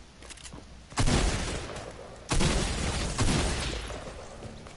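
Gunfire bursts out in short, loud volleys.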